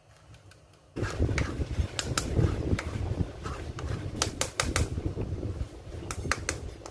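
A spoon scrapes against a metal sieve.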